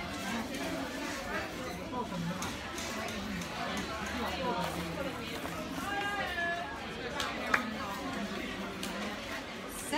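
A young woman bites into a burger and chews.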